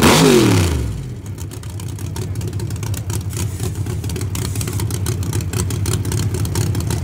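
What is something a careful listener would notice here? A race car engine idles with a deep, rough rumble.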